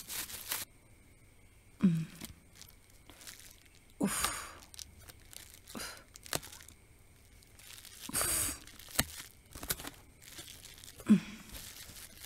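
Tape rips off a cardboard box.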